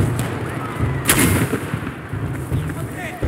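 A rifle fires a single loud shot in an enclosed space.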